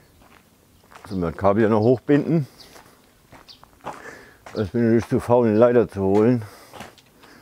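A man speaks loudly outdoors.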